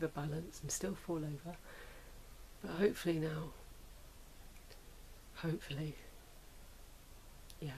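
A middle-aged woman talks calmly and close by, in short bursts with pauses.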